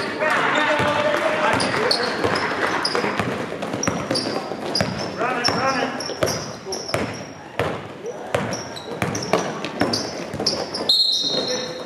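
Basketball shoes squeak sharply on a hardwood court in a large echoing hall.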